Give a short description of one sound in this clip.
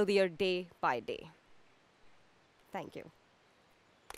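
A young woman speaks with animation outdoors.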